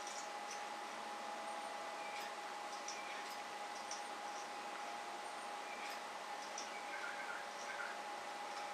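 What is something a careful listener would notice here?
A lock pin scrapes and clicks faintly as it is picked.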